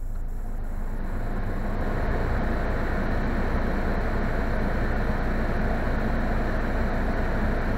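A car's ventilation fan starts blowing with a loud rushing hiss.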